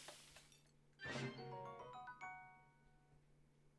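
A bright rising chime jingle plays.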